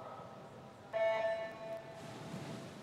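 An electronic start signal beeps.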